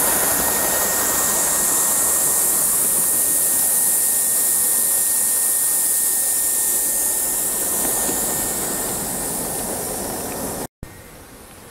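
A small steam engine hisses loudly, letting off steam.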